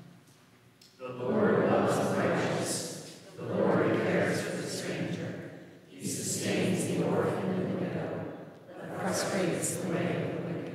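An elderly woman reads out calmly through a microphone in a large echoing hall.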